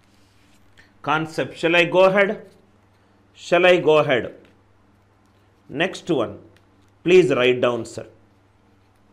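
A man speaks calmly into a microphone, explaining in short phrases.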